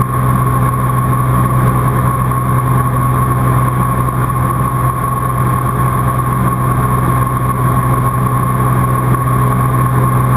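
A small plane's engine drones steadily from inside the cabin.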